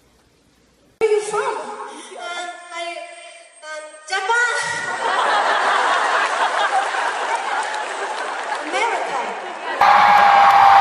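A woman sings through a microphone on a stage.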